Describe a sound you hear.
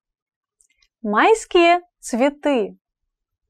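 A young woman speaks clearly and slowly into a close microphone.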